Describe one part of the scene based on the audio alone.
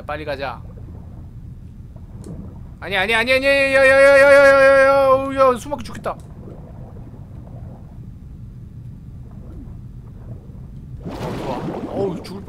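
Water bubbles and swirls as a swimmer moves underwater.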